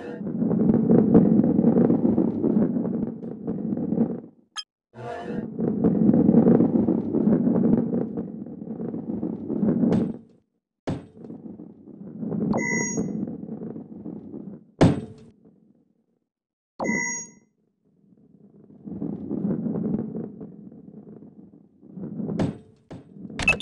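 A heavy ball rolls with a low rumble, fading in and out.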